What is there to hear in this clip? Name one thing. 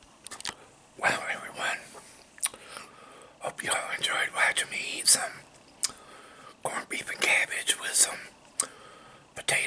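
A middle-aged man talks calmly close to a microphone.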